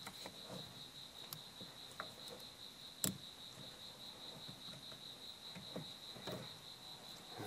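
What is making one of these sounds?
Metal tools click and scrape against brake parts.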